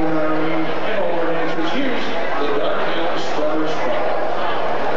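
A man sings into a microphone through loudspeakers in a large hall.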